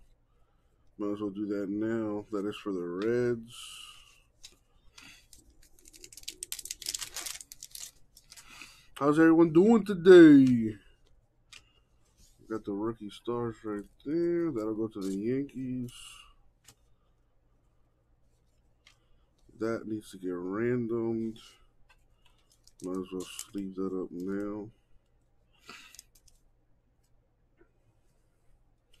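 Trading cards rustle and flick between hands.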